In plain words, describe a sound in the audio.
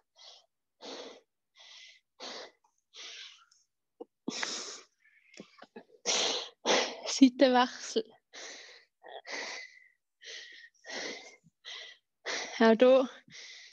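A young woman speaks calmly and clearly, close by.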